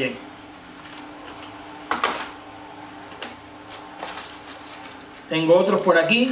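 Plastic packaging clicks and crinkles in a man's hands.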